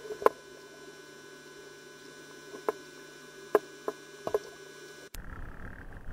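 Underwater clicks and crackles sound through the water.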